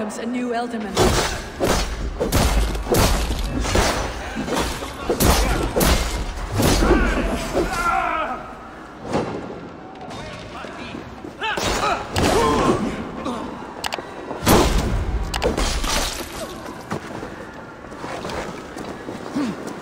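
Swords clash and strike with heavy, ringing blows.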